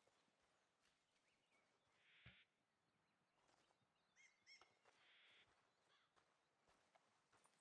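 Horse hooves clop on a dirt track.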